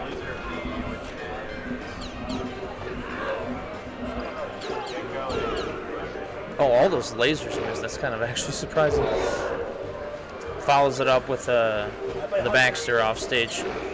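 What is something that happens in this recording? A young man commentates excitedly into a microphone.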